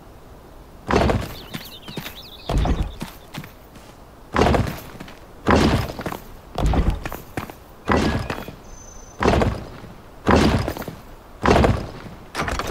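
Heavy stone blocks thud one after another as they are set down.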